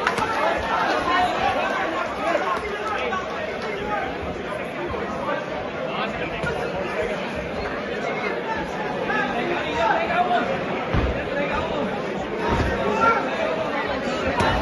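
A ringside crowd murmurs and calls out in an indoor hall.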